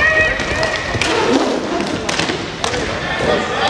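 A hockey stick strikes a ball with sharp clacks.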